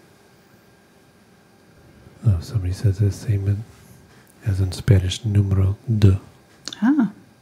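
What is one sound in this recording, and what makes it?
A paintbrush dabs and strokes softly on canvas.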